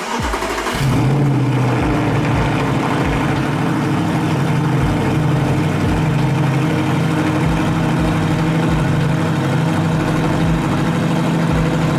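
A car engine idles with a steady, deep rumble in an echoing space.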